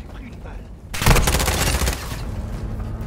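A wall bursts apart with a loud crash.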